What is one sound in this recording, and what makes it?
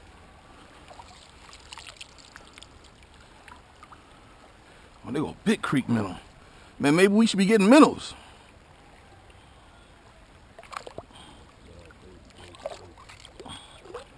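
A net splashes and swishes through shallow water.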